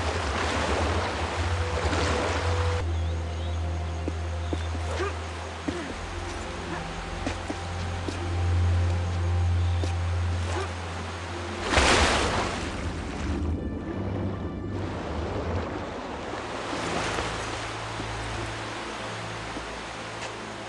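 A waterfall roars steadily.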